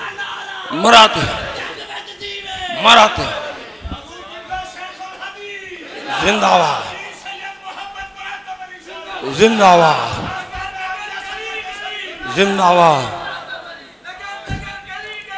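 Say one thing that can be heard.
A man chants loudly into a microphone in a room that echoes, his voice rising in sudden bursts.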